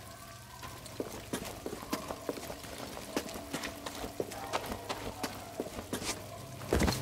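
Footsteps patter quickly over stone.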